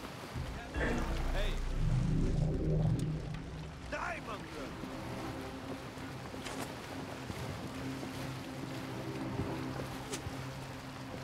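Water splashes and rushes against the hull of a sailing boat.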